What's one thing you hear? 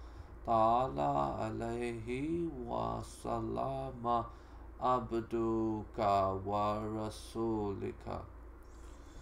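A man reads out calmly into a microphone.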